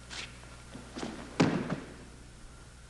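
A body slams hard onto a mat.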